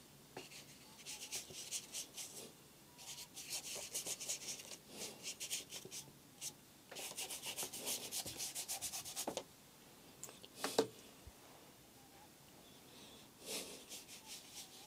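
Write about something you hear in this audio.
A brush scrubs and swishes across paper in quick, rasping strokes.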